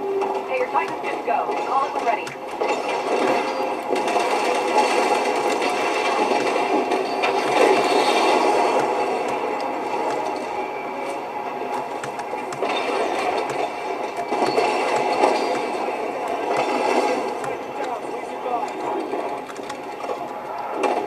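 Guns fire in rapid bursts from a game, heard through a loudspeaker.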